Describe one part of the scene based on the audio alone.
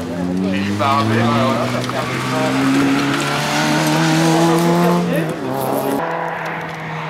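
A rally car engine revs hard, rising and falling as the car shifts gears.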